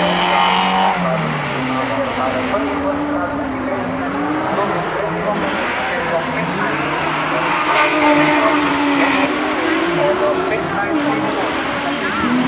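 Racing engines roar and rev in the distance.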